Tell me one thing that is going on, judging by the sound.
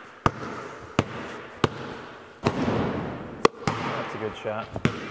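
Basketballs bounce with loud thuds in a large echoing hall.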